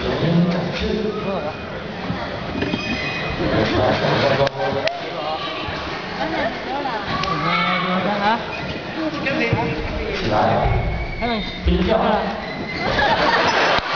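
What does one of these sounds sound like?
An audience murmurs and chatters in the background.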